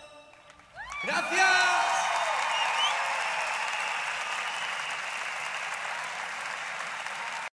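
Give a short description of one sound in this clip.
A large crowd cheers and screams in a big echoing hall.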